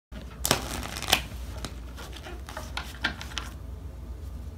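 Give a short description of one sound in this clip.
Playing cards riffle and snap together as they are shuffled.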